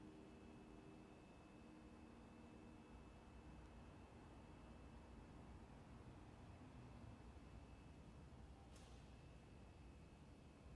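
A piano plays softly in a large echoing hall.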